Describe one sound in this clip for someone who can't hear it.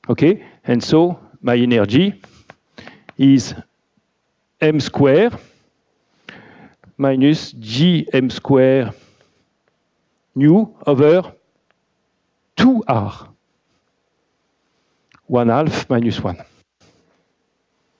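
A man lectures calmly through a microphone, in short bursts with pauses.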